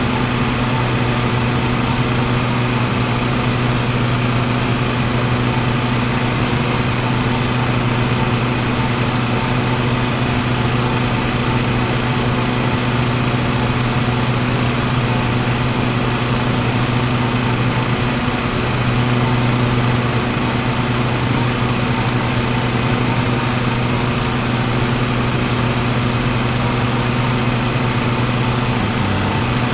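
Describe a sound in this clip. Mower blades cut through grass with a whirring rush.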